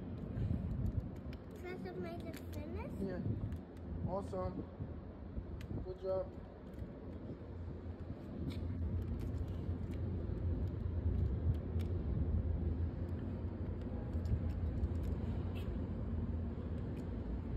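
Plastic parts of a toy click and snap as small hands twist them.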